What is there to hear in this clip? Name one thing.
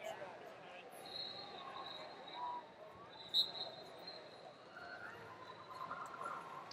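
Wrestling shoes squeak on the mat.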